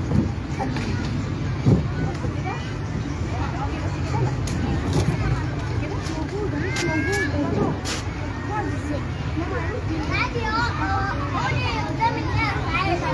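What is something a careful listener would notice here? A crowd of children chatters and calls out nearby, outdoors.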